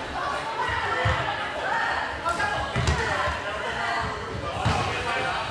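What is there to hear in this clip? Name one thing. A ball thuds off feet and the floor.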